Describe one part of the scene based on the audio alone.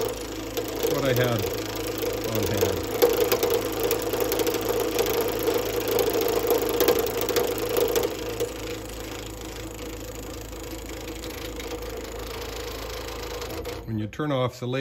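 A wood lathe hums as it spins.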